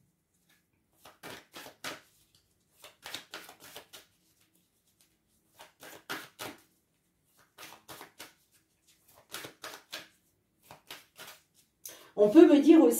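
A deck of cards is shuffled by hand with soft flicks and taps.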